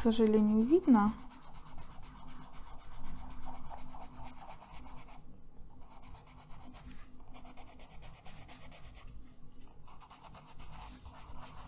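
A coloured pencil scratches quickly back and forth on paper.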